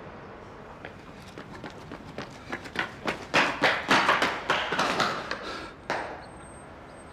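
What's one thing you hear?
A rolling suitcase rattles along the ground.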